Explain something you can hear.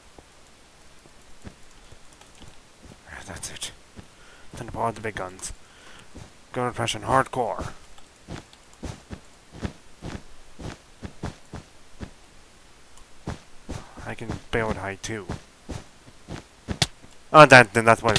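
Blocks click softly into place in quick succession.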